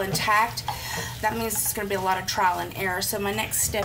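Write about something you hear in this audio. Metal tongs scrape and clink against a pan.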